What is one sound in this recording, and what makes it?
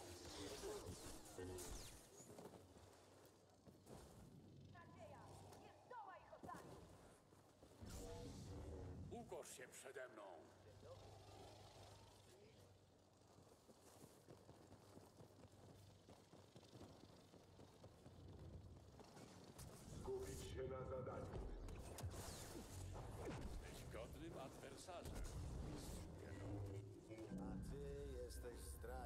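A lightsaber hums and crackles as it swings.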